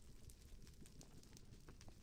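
Fire crackles and pops close by.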